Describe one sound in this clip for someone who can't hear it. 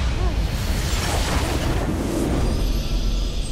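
A game's base explodes with a loud rumbling blast.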